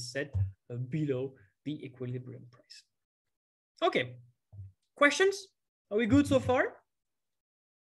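A young man speaks calmly through a microphone, as on an online lecture.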